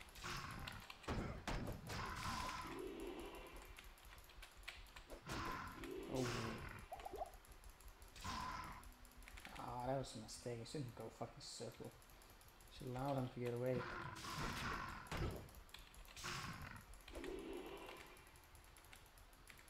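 Magic spells whoosh and crackle in repeated bursts.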